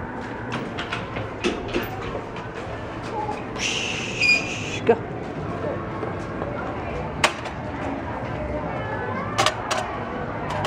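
A young boy talks and shouts excitedly close by.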